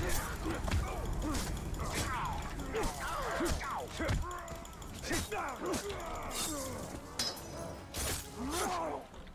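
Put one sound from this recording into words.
Creatures screech and snarl.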